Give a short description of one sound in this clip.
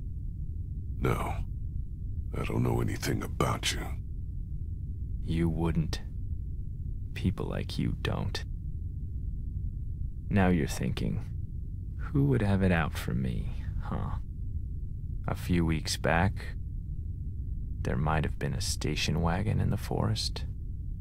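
A second man answers in a worried, hesitant voice.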